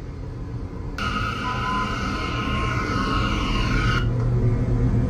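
Train brakes squeal loudly as a subway train slows.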